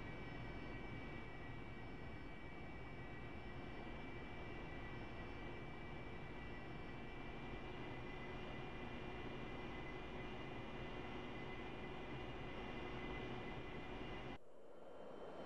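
A jet engine hums steadily, heard from inside the cockpit.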